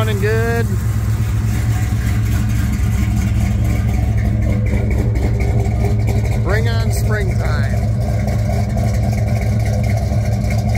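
A car engine idles with a deep, steady rumble.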